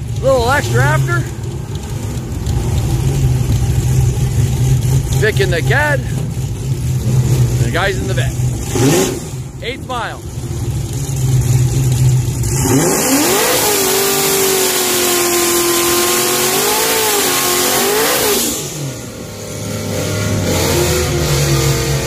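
Car engines idle with a deep, steady rumble.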